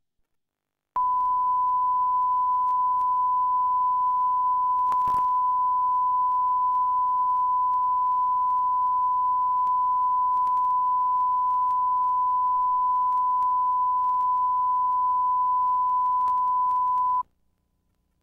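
A steady, high test tone sounds without a break, then stops abruptly.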